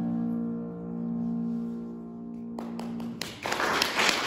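A woman sings in a full operatic voice in a room with some echo.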